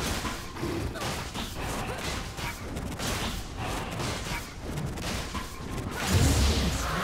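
Rapid magical blasts and hits crack in quick succession.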